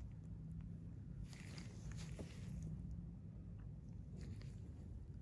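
A metal tool scrapes softly against skin.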